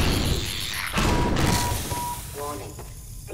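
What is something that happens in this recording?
A loud blast booms and rumbles.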